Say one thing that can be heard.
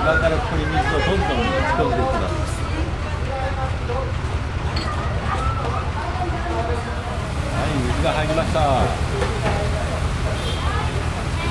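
Water splashes into buckets from a hose.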